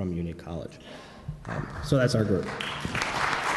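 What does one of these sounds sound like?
A young man speaks calmly through a microphone in an echoing hall.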